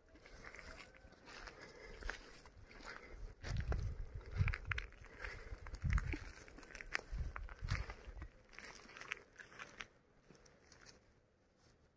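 A horse's hooves crunch on dry straw as it steps about.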